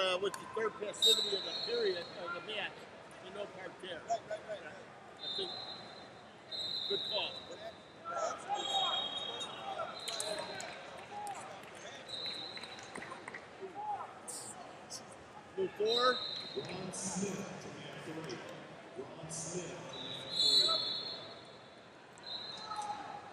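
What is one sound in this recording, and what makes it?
Wrestling shoes squeak sharply on a mat.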